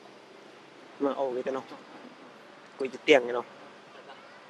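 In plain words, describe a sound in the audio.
A monkey gives short, loud calls nearby.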